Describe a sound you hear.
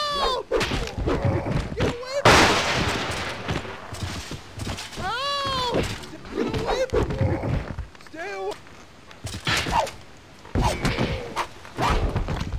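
Swords and blades clash in a melee fight.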